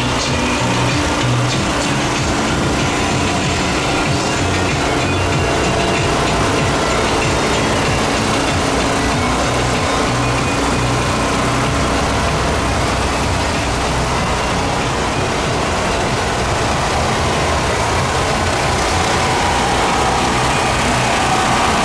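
Engines of parade floats rumble steadily.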